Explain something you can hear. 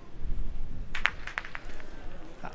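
Metal boules land on gravel and clack against each other.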